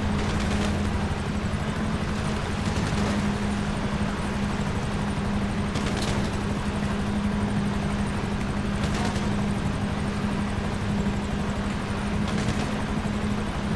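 A boat engine drones steadily at speed.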